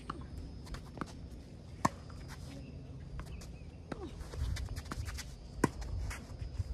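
A tennis ball is hit with a racket in sharp pops, now near and now farther off.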